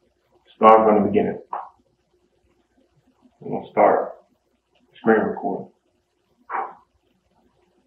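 A young man speaks calmly in short phrases close to the microphone.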